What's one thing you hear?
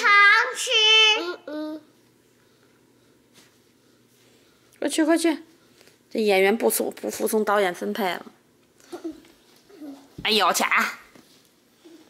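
A young child talks and squeals in a high voice close by.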